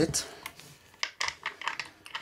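Knobs click as they are turned.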